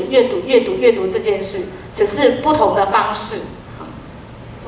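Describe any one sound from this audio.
A woman speaks into a microphone over loudspeakers in a large echoing hall.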